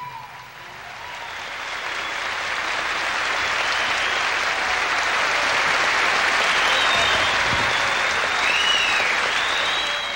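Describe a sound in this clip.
A large crowd applauds, the clapping swelling louder.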